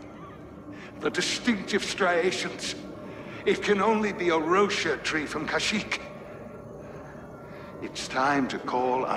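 An elderly man speaks calmly and gravely.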